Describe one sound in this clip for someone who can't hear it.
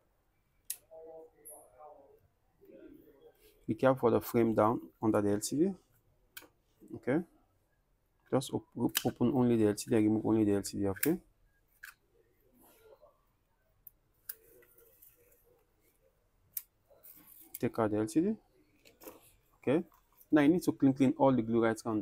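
A plastic pry tool clicks and scrapes against a phone's frame.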